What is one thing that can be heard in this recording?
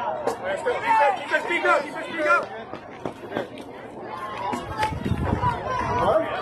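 Young girls shout and cheer outdoors.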